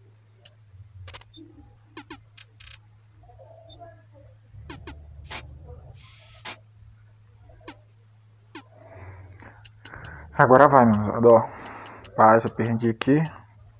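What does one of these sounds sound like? Short electronic game blips and clicks sound now and then.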